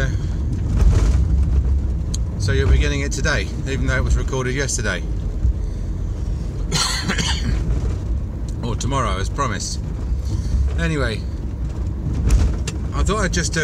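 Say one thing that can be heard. A car engine rumbles low and steady from inside the cabin.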